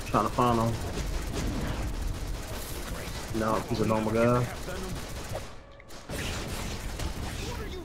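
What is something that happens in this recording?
Magical energy blasts zap and crackle in a fight.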